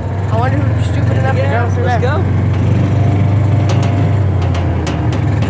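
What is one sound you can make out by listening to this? A small electric motor hums steadily.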